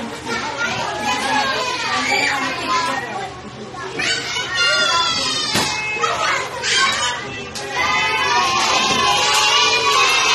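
A crowd of young children chatter and shout excitedly in a noisy room.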